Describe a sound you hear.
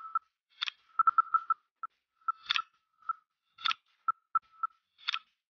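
Short electronic blips and chimes sound as game pieces are placed.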